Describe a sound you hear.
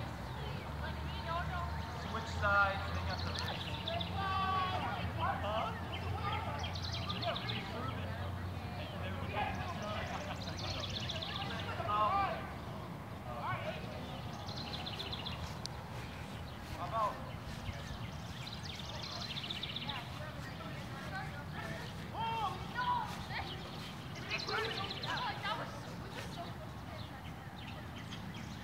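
A group of young people shout and chatter at a distance outdoors.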